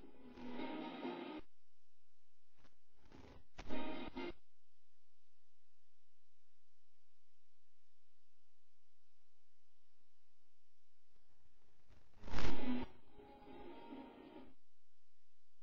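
Video game sounds play from a television speaker.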